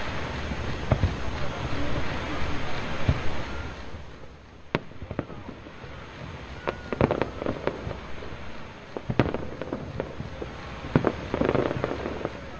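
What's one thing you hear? Fireworks burst with sharp pops and bangs.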